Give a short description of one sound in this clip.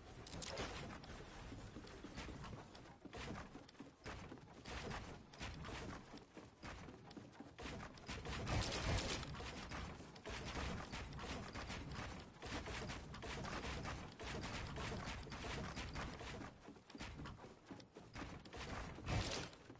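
Building pieces in a video game clatter into place in rapid succession.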